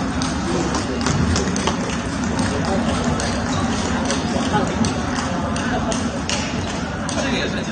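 Table tennis balls click and bounce off paddles and tables all around.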